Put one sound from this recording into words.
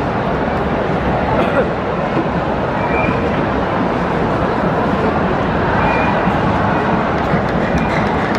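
Men talk and shout excitedly close by.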